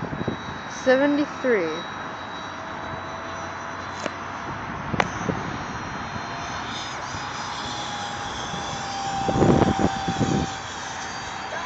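A small model plane's engine whines steadily in the distance.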